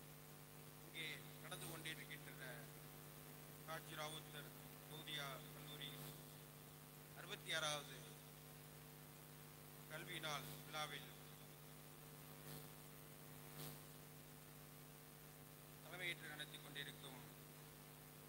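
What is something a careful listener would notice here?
A middle-aged man speaks through loudspeakers in pauses, with an echo.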